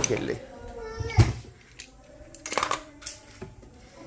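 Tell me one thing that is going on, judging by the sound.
A cupboard door clicks open.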